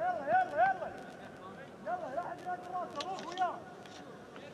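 A young man shouts across an open football pitch.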